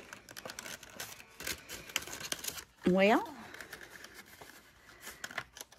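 Paper rustles and crinkles as it is handled and folded.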